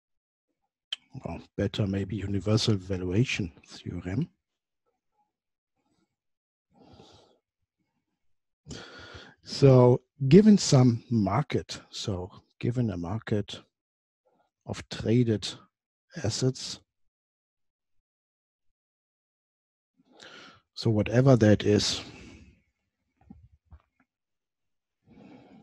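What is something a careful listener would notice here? A man lectures calmly, close to a microphone, with pauses.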